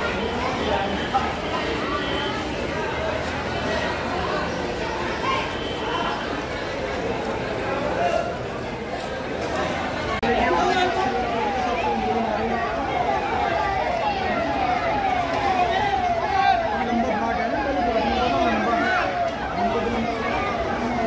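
Water splashes as people bathe.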